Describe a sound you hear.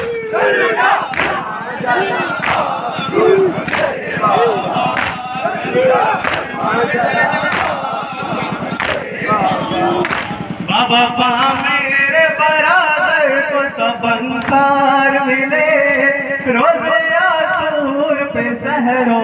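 A crowd of men chant loudly together.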